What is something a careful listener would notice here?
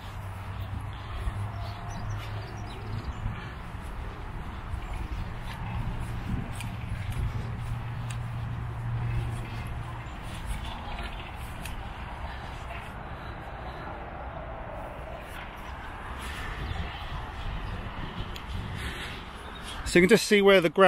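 Footsteps swish through grass.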